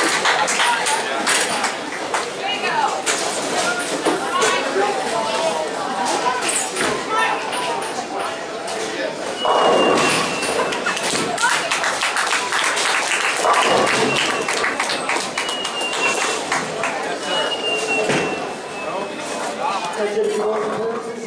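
Balls and pins clatter on other lanes in a large echoing hall.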